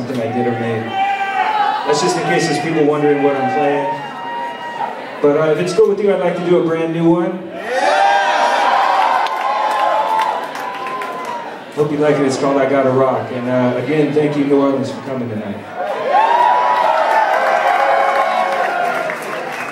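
Loud electronic music with sung melodies plays through loudspeakers in a large echoing hall.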